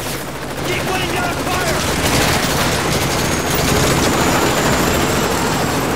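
Rapid gunfire bursts out in sharp cracks.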